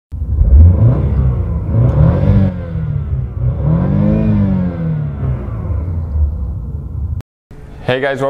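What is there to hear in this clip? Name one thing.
A car engine revs up and down several times.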